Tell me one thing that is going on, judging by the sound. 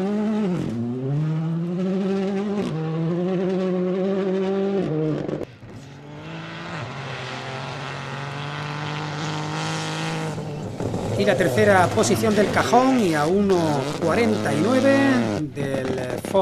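A rally car engine roars past at high revs, its pitch climbing and dropping with each gear change.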